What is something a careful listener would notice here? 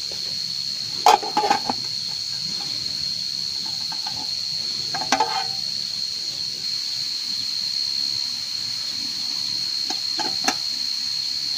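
Metal mess tins clink and scrape as they are handled.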